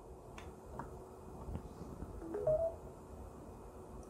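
A plug clicks into a charger.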